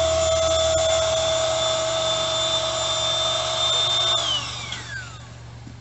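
An electric air pump whines steadily, then winds down.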